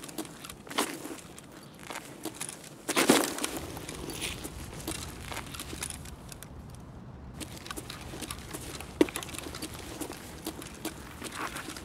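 Footsteps tread on a hard ledge.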